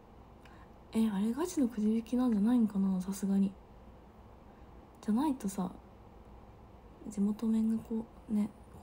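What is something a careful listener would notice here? A young woman speaks softly and casually, close to a microphone.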